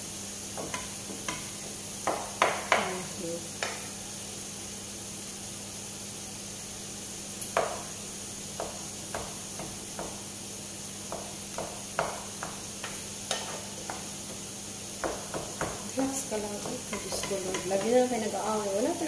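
A wooden spatula scrapes and knocks against a frying pan while stirring food.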